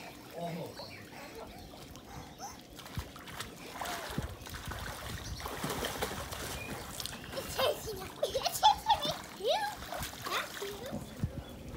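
Children splash and swim in water.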